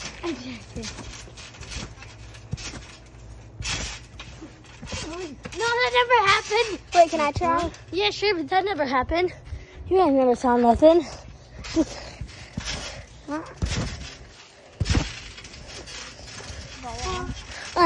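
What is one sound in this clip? Feet thump on a trampoline mat.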